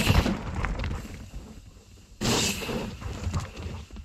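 Bicycle tyres roll and crunch over a dirt trail, coming closer.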